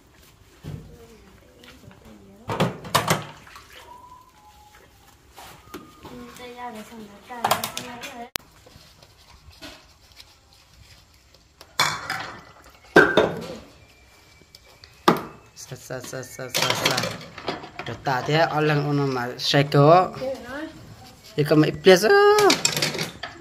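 Dishes clink and clatter.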